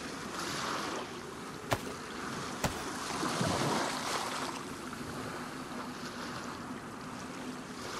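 Water splashes and sloshes as a swimmer paddles.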